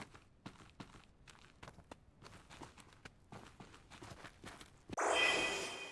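Quick footsteps patter on soft ground.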